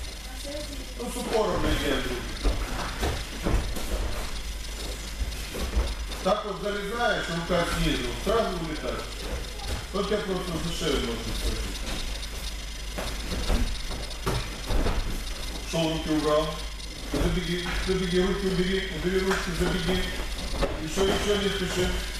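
Men talk nearby in a large echoing hall.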